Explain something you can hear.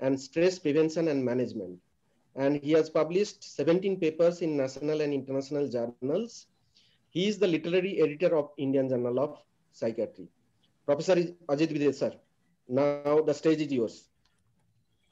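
A man speaks steadily over an online call.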